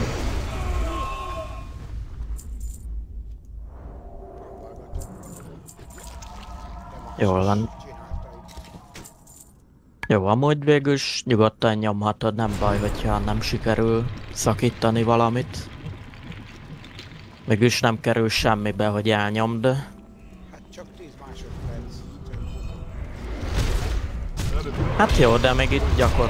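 Magic spells crackle and whoosh during a fight.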